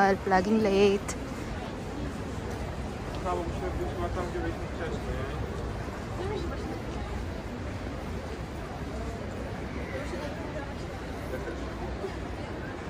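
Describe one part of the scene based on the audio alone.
Footsteps of a walking crowd shuffle on paving stones outdoors.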